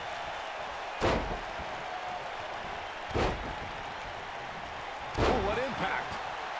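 Heavy blows thud on a body.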